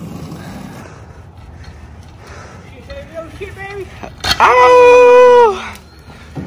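An electric scooter's wheels roll over asphalt.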